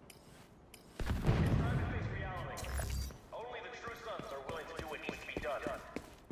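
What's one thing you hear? Footsteps crunch on pavement.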